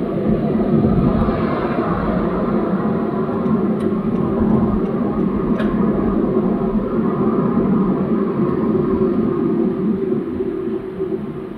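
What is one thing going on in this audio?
A large truck rumbles past close by.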